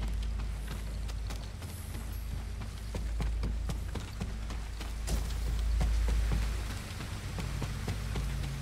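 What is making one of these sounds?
Footsteps creak softly on wooden boards.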